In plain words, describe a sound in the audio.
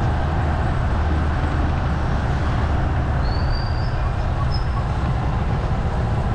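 Wind rumbles steadily across a moving vehicle.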